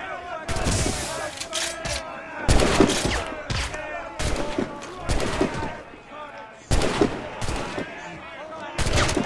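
Cannons boom loudly now and then.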